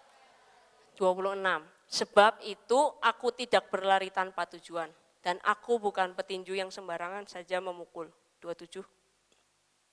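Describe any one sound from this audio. A young woman speaks with animation through a microphone and loudspeakers.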